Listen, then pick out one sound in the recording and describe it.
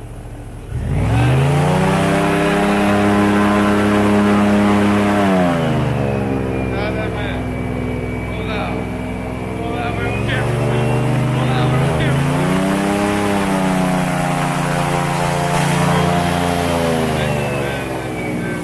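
A boat motor drones loudly, rising and falling in pitch.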